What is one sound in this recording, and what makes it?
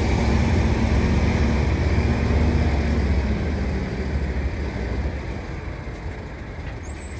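A heavy truck engine rumbles low and steady as it slowly pulls a load forward, then gradually quietens.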